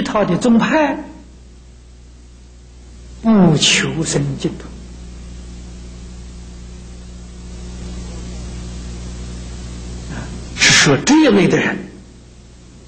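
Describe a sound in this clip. An elderly man speaks calmly through a microphone, in short phrases with pauses.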